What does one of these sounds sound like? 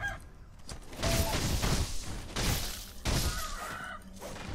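A sword slashes and clangs against a foe.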